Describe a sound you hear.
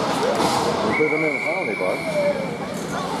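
A referee's whistle blows once, steady and shrill.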